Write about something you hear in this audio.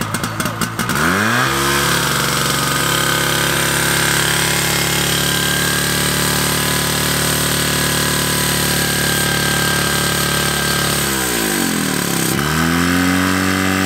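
A pump engine roars steadily and loudly close by.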